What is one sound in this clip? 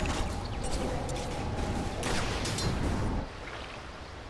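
Magic spells crackle and weapons clash in a busy fight.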